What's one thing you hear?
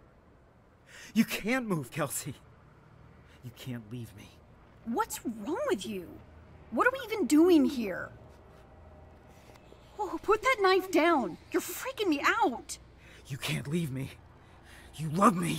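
A man pleads in a strained voice.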